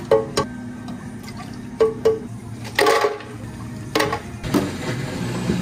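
Ice cubes clunk into a plastic blender jar.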